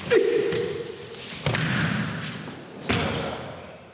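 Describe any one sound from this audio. A body slams onto a mat.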